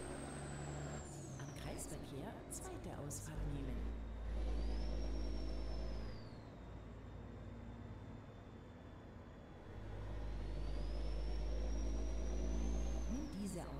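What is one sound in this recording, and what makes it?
A truck engine hums steadily, rising and falling as it speeds up and slows.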